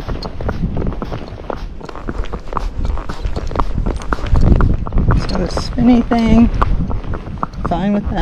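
A horse's hooves clop steadily on pavement.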